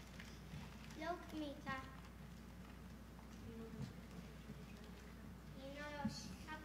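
A child speaks loudly.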